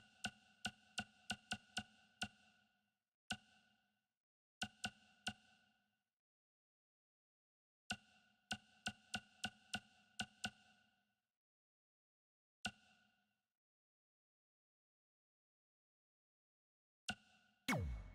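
Short chiming menu tones tick in quick runs as a selection steps through a list.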